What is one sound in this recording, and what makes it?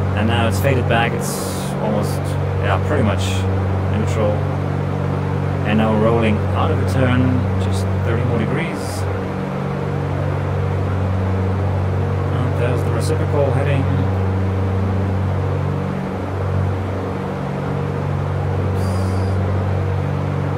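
A light aircraft engine drones steadily.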